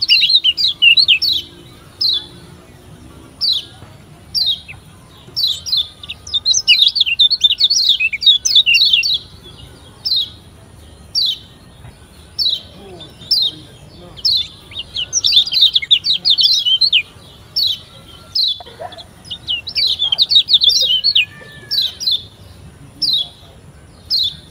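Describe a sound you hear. A small bird sings close by in rapid, high chirping trills.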